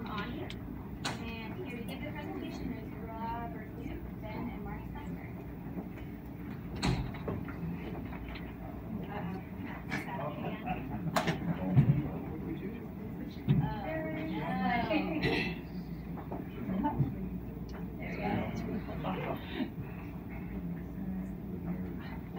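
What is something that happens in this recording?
A man speaks to a room, heard from across it.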